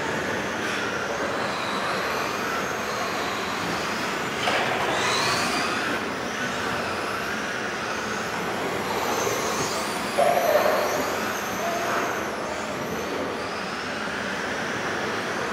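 Small electric motors of toy race cars whine, rising and falling in pitch as they speed around an echoing hall.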